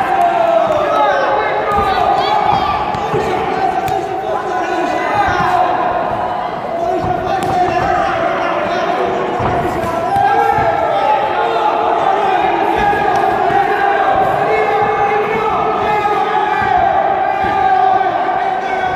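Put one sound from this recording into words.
Boxing gloves thud as two fighters trade punches.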